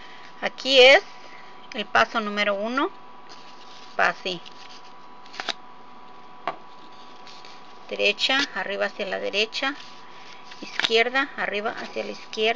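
A string scrapes and rubs against cardboard.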